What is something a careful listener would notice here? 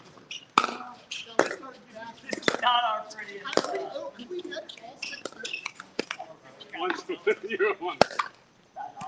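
Pickleball paddles pop sharply against a ball in a quick rally.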